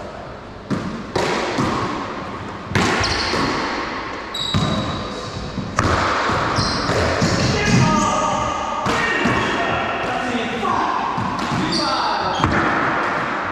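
A ball smacks hard against walls and rackets, echoing loudly around an enclosed court.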